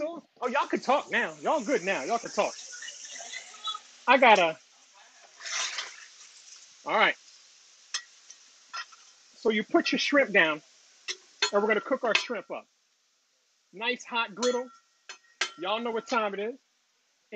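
Food sizzles loudly on a hot griddle.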